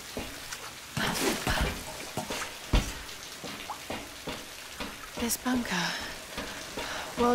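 Hands grip and scrape on metal while climbing.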